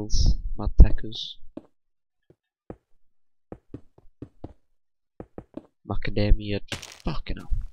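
Stone blocks are placed with short, dull thuds.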